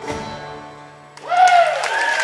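A band's final chord rings out and fades away.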